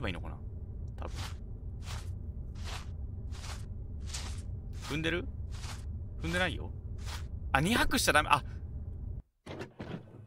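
Footsteps tread steadily over grass.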